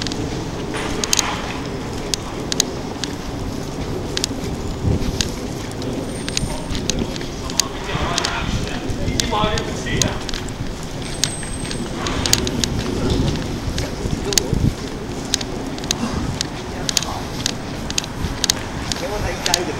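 Footsteps tap on a paved street at an even pace.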